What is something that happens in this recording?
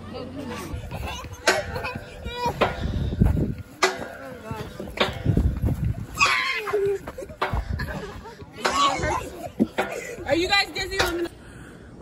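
Children shout and chatter outdoors.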